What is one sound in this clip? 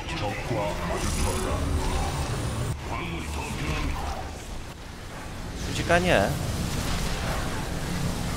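Laser beams crackle and hum as units battle.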